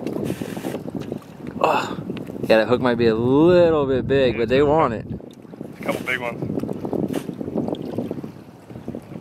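Water splashes and churns against the side of a moving boat.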